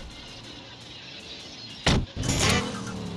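A car door slams shut.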